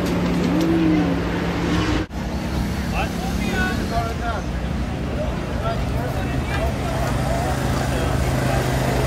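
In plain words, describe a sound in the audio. Men and women talk outdoors among a crowd.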